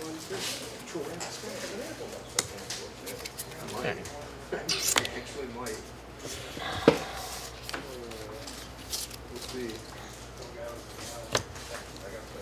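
Cards tap and slide on a table mat.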